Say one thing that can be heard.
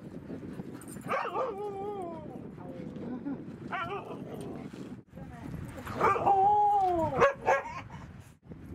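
Dogs howl and yip playfully, close by.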